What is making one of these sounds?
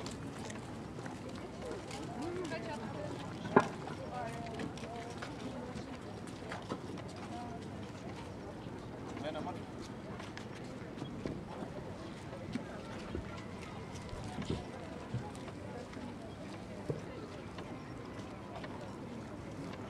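Small waves lap softly on the water outdoors.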